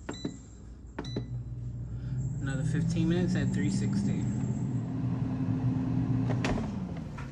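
An air fryer fan hums steadily.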